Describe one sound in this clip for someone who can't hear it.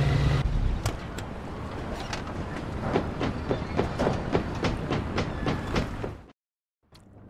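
Footsteps clang quickly on metal stairs.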